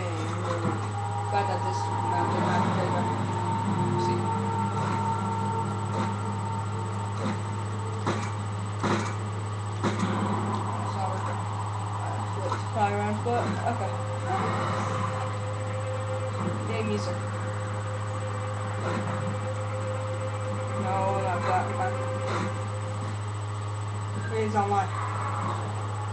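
Gunshots from a video game ring out through a television speaker.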